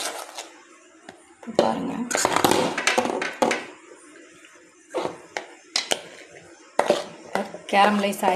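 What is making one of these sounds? A metal pan clanks and scrapes against another metal pan.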